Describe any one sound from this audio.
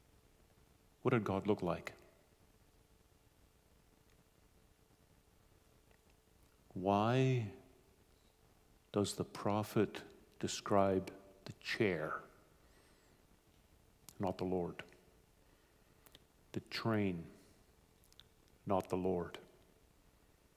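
A middle-aged man speaks slowly and calmly through a microphone, with long pauses.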